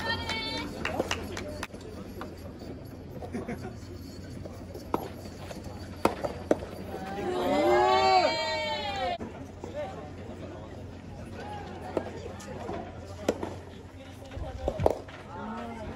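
Rackets hit a tennis ball with sharp pops.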